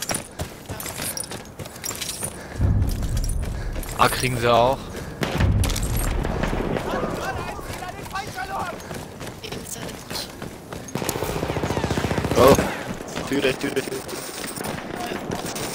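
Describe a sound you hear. Footsteps run quickly over sand and stone.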